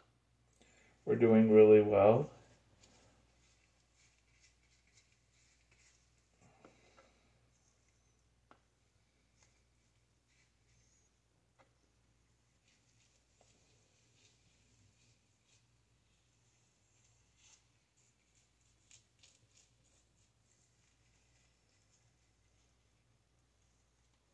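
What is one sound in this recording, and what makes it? A brush softly dabs and taps against a bowl.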